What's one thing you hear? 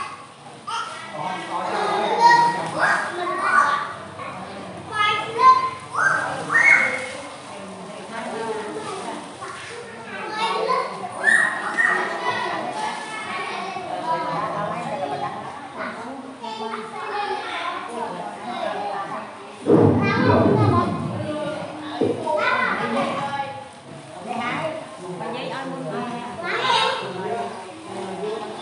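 Several adults talk in the background.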